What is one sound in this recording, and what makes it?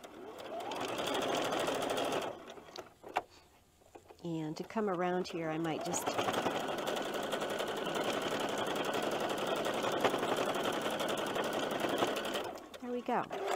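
A sewing machine whirs steadily as it stitches.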